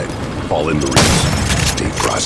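A shotgun fires a single loud blast.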